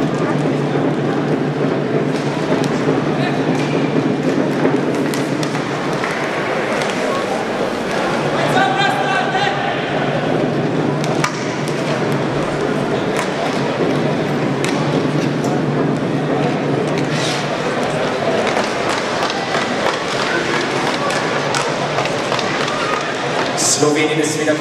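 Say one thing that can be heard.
A crowd murmurs throughout a large echoing arena.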